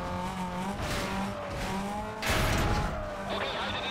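A car crashes and scrapes as it flips over.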